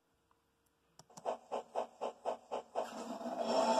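A steam train chugs along in quick, even puffs.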